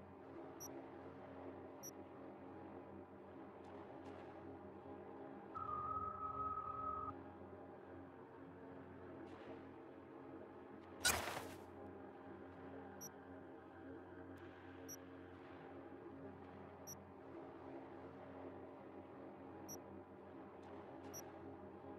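Short, soft game menu clicks sound now and then.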